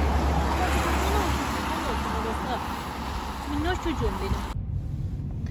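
A young girl speaks quietly close by.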